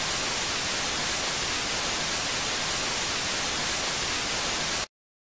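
Loud, steady static hisses.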